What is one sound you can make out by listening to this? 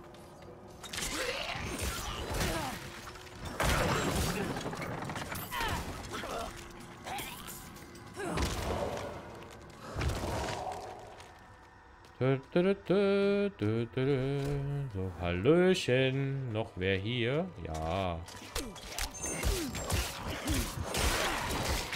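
Fighting creatures clash with thuds and slashing hits.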